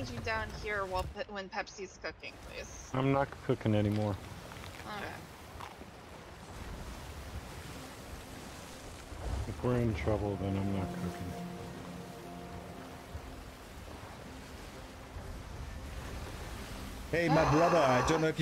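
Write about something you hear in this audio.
Ocean waves wash and splash.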